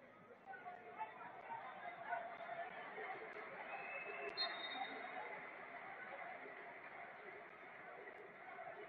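A stadium crowd murmurs and chants steadily in a large open space.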